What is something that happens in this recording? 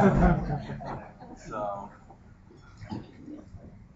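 A man speaks into a microphone in a room with some echo.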